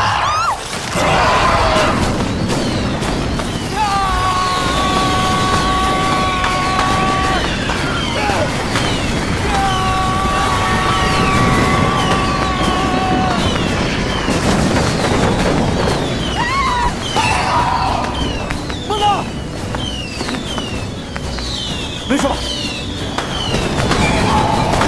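Fireworks whistle in rapid bursts.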